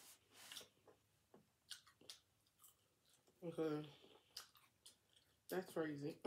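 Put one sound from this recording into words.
Crispy food crunches and rustles as it is picked up.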